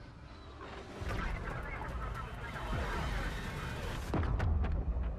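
A missile streaks past with a rushing roar.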